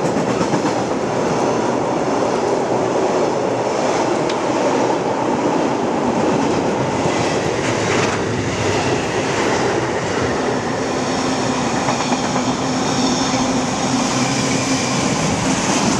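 A freight train rushes past close by with a loud, steady roar.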